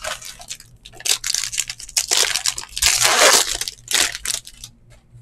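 A foil pack tears open.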